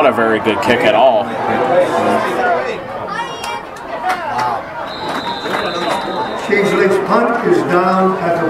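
A crowd of spectators murmurs and calls out in the distance outdoors.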